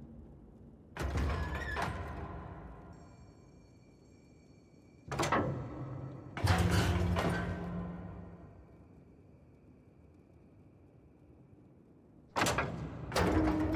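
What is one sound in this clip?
Heavy stone grinds and rumbles in loud bursts.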